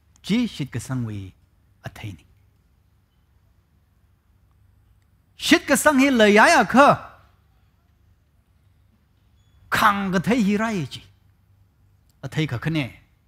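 A man speaks expressively through a headset microphone, in bursts with long pauses.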